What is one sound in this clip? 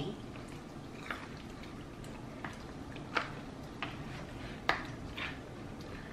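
Food crackles as fingers tear fried chicken apart.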